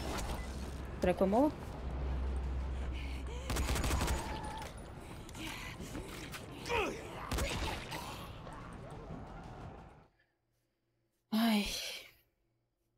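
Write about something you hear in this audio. A young woman talks into a microphone in short bursts.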